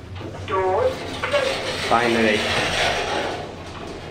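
Elevator doors slide shut with a rumble.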